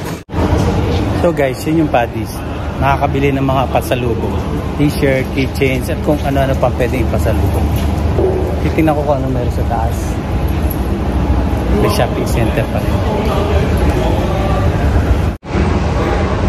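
A middle-aged man talks close to a microphone, with animation.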